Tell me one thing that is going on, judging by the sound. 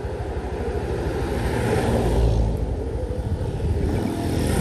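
A motorcycle engine hums as it approaches along the road.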